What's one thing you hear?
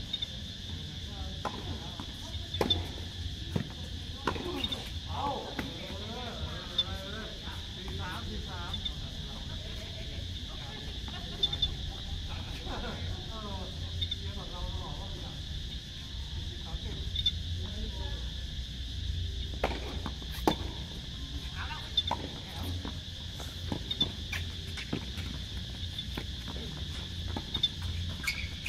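Tennis balls pop off racket strings in a rally.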